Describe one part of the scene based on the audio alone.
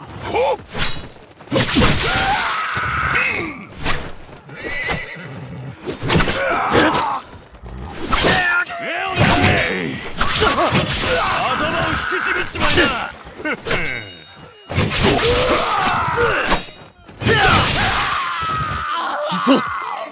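Katanas clash and ring in a sword fight.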